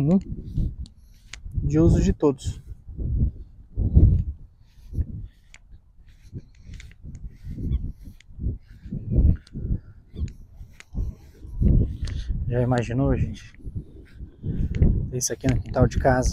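Wind gusts outdoors and buffets against the microphone.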